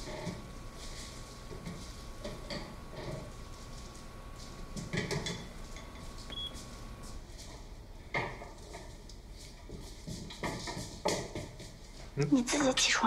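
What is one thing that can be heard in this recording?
Pans and utensils clink quietly.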